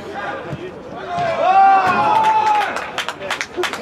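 Men shout excitedly outdoors.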